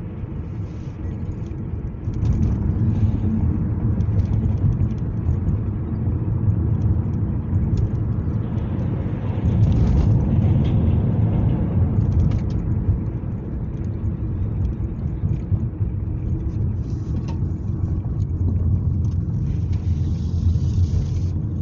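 A car's engine hums steadily from inside as it drives.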